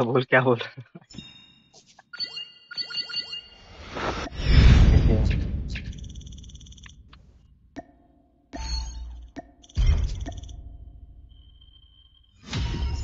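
Electronic menu chimes ring out.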